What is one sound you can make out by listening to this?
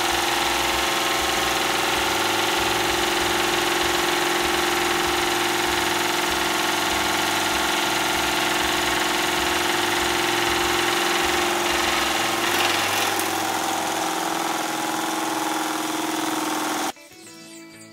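A small engine whirs steadily.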